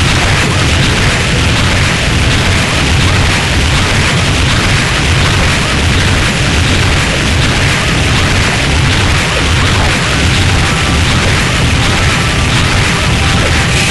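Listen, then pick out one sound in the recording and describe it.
Sharp hits and slashes crack and whoosh during a fight.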